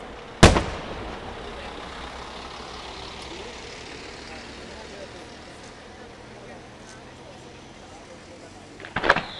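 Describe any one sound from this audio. A firework bursts with a loud, echoing bang.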